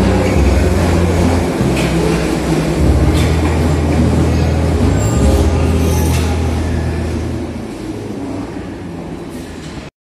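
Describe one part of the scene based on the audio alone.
A metro train rumbles loudly along the track and fades as it pulls away.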